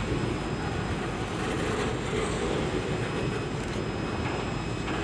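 A freight train rumbles and clatters past close by.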